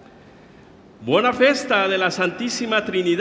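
A man begins to chant loudly through a microphone in a large echoing hall.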